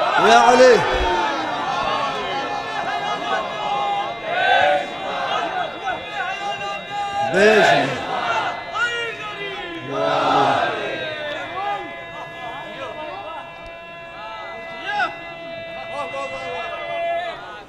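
A young man recites with feeling through a microphone and loudspeakers.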